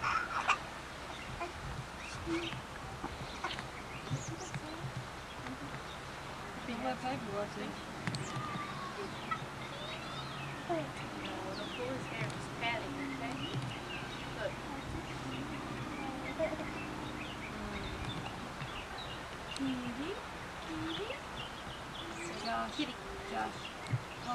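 A baby babbles.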